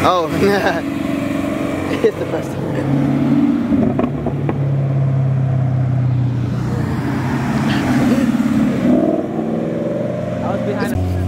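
Loud sports car engines rumble and rev as cars drive past one after another.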